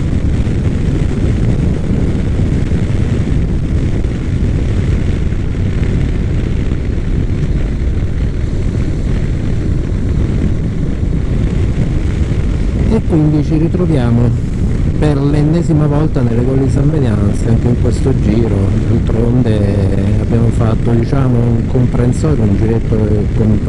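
Wind roars steadily past a moving rider.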